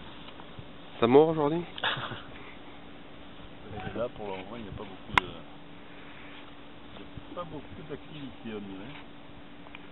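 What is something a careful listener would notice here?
A middle-aged man speaks calmly, close by, outdoors.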